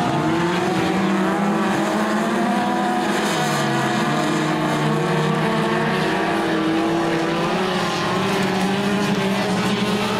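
Several race car engines roar loudly, revving up and down.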